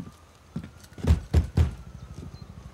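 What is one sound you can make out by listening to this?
A fist knocks three times on a wooden door.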